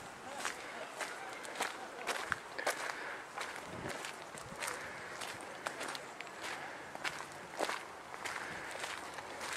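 Footsteps crunch on gravel at a walking pace.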